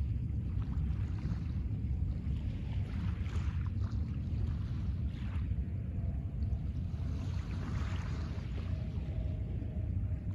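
Small waves lap gently on a pebble shore.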